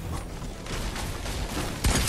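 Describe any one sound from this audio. A pickaxe swings and strikes with a dull thud.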